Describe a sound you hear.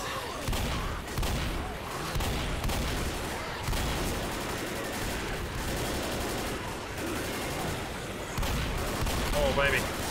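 Shotgun blasts boom repeatedly.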